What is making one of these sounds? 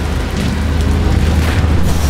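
Electricity crackles and sizzles.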